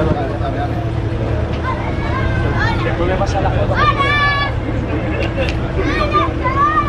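Several people chatter in the background, outdoors.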